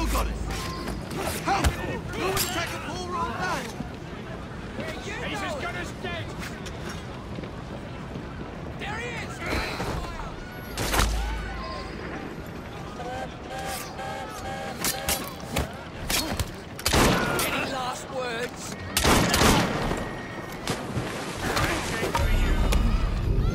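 Men shout and yell during a fight.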